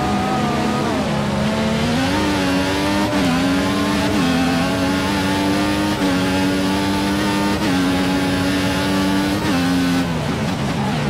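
A racing car engine screams, rising in pitch through each gear and dropping sharply at every gear change.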